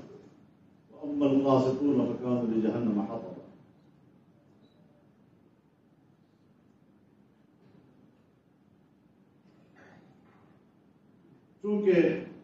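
An elderly man speaks solemnly into a microphone.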